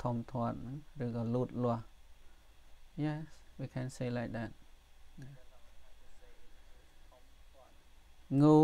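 A man reads out slowly and clearly into a microphone.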